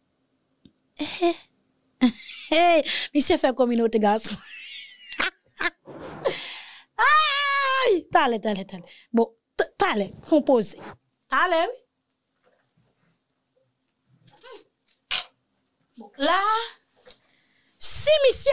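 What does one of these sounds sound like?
A woman speaks with animation into a close microphone.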